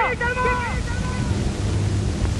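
A man cries out in a drawn-out, echoing voice.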